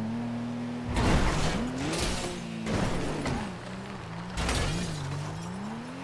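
Car tyres screech in a skid.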